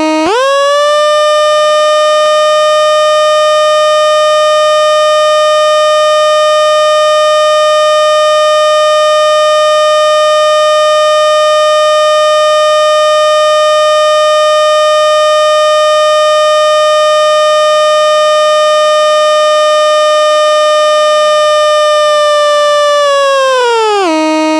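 An electronic sound box drones a steady, bright buzzing tone.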